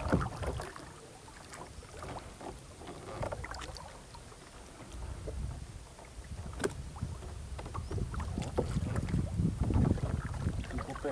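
A rope rustles softly as it is coiled.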